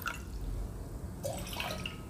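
Liquid pours into a metal pot.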